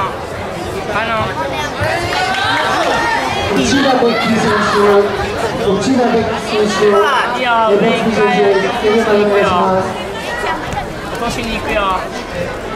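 Several voices shout loudly in encouragement during the match.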